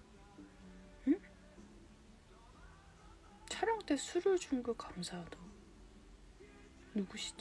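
A young woman speaks softly and casually, close to a phone microphone.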